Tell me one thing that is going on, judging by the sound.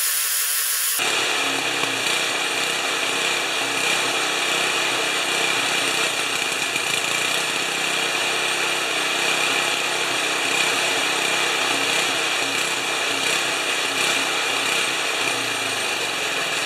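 A small single-cylinder snow blower engine runs.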